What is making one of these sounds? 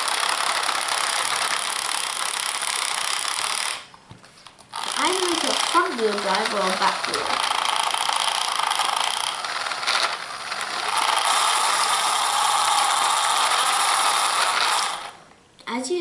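A small toy motor whirs steadily as plastic wheels spin.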